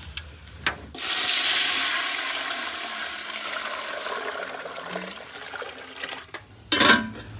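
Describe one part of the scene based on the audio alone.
Water pours from a bucket into a large pot with a rushing splash.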